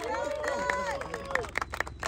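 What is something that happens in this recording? A young man cheers loudly outdoors.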